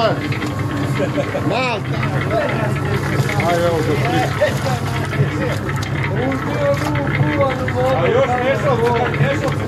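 Wet material churns and tumbles inside a rotating drum.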